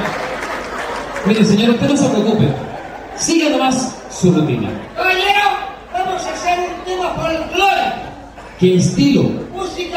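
A man talks with animation through a microphone and loudspeakers.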